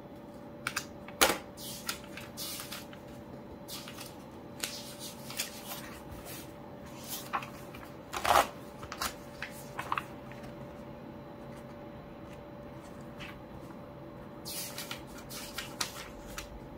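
Paper pages rustle as they are turned and smoothed.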